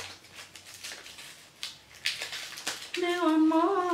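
A wrapper crinkles in a young woman's hands.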